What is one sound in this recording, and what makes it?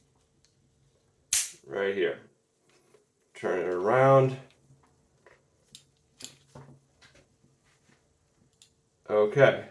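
A metal carabiner gate clicks.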